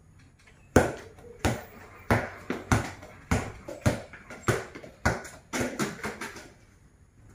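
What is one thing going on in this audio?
A ball bounces repeatedly on a hard tiled floor, each bounce ringing with a short echo.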